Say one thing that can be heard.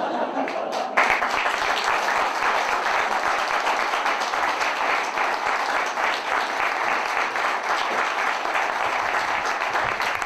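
A crowd applauds loudly and steadily.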